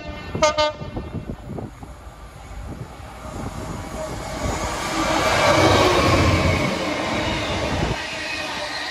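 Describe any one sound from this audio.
A diesel locomotive approaches and roars past close by.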